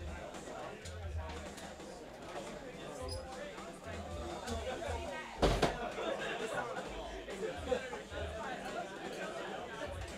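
Young men talk quietly in an echoing room.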